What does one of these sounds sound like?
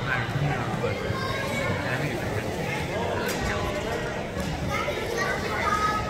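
Young girls chatter and call out in a large echoing gym.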